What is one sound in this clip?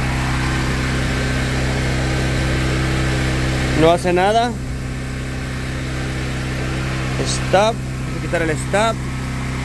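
An electric motor hums steadily.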